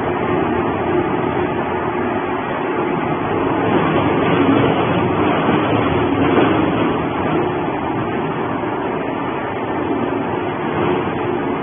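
Cardboard boxes crunch and tear as a shredder chews them.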